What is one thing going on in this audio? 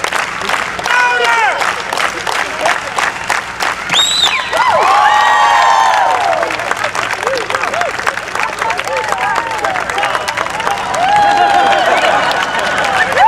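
Men in a crowd shout and whoop with excitement.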